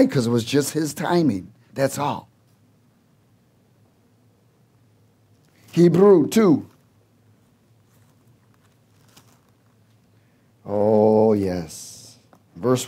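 A middle-aged man speaks with animation through a headset microphone and loudspeakers, pausing often.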